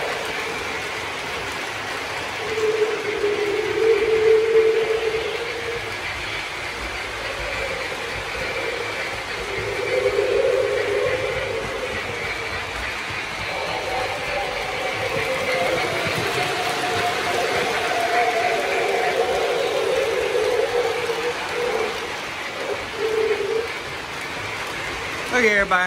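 Model trains rumble and clatter steadily along the tracks.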